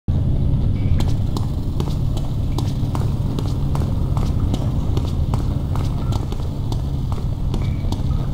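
Footsteps echo steadily on a hard floor in a large, echoing space.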